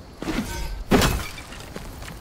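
A sword strikes hard with a sharp metallic clash.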